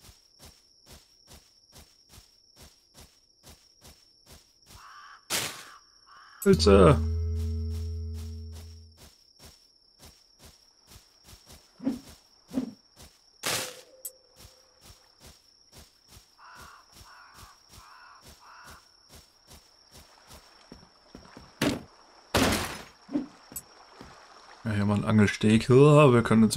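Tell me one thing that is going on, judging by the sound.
Footsteps tread steadily on soft ground.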